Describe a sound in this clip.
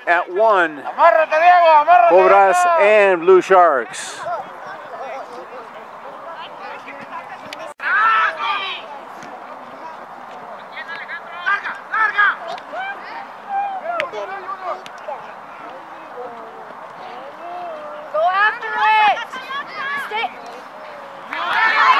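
Young boys shout and call out across an open field outdoors.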